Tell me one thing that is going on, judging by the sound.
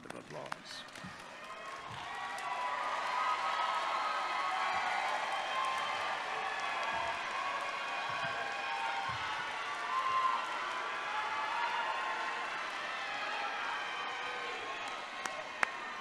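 A large crowd cheers and applauds in a large hall.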